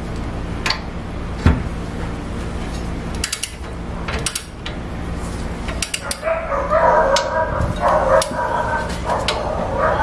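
A torque wrench clicks as a nut is tightened.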